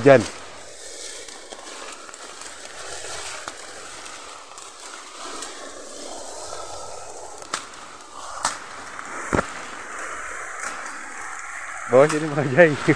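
Grass and leaves rustle as a person pushes through them on foot.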